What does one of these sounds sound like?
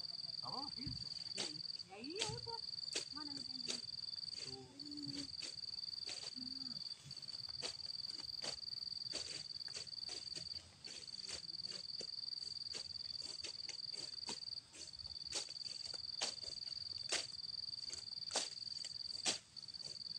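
A blade chops through grass and brush.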